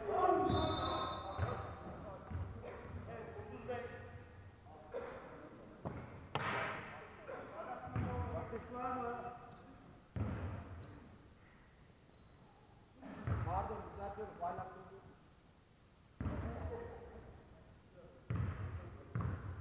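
Young players call out to each other across an echoing hall.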